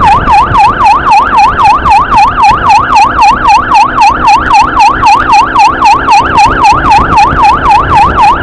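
A siren yelps fast and steadily, close by.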